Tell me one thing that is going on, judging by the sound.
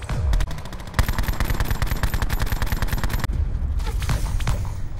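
A rifle fires rapidly in quick succession.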